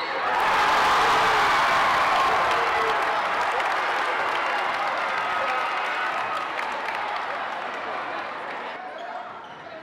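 A large crowd cheers and shouts loudly in an echoing gym, then quiets down.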